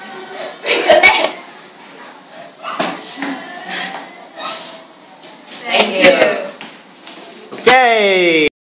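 Teenage girls talk and laugh nearby in a small echoing room.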